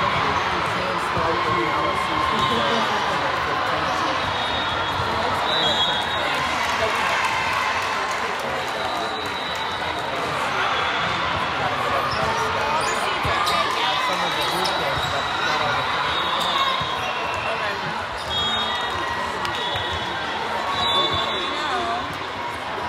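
Many voices chatter and call out in a large echoing gym.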